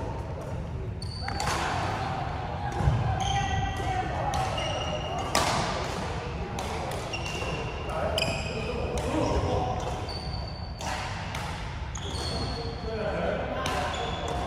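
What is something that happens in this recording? Shoes squeak sharply on a hard sports floor.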